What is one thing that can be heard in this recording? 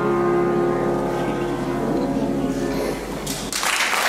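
A grand piano plays a closing passage, and its last chord rings out.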